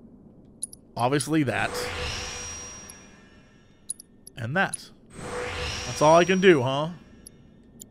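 A bright shimmering sound effect sweeps up in bursts.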